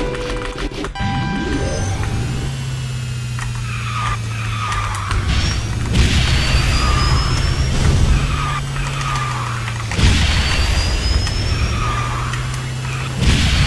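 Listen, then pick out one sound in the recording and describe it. Kart engines hum steadily as game cars race.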